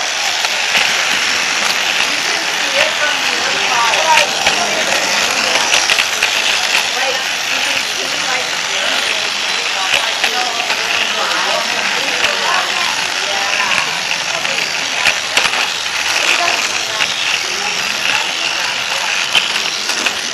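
Plastic wheels clatter over track joints.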